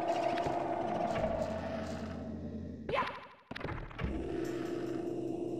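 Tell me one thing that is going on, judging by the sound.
Upbeat electronic game music plays.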